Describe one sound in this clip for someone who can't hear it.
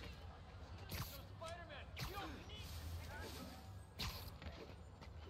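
Web lines shoot out with sharp thwips.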